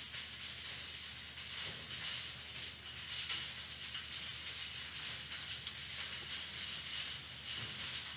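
Bats flap and rustle their wings.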